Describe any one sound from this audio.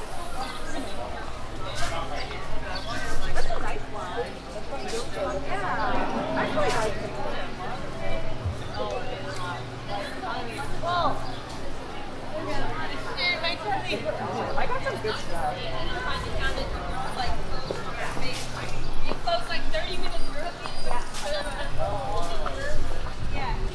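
Young women chat and talk with animation close by.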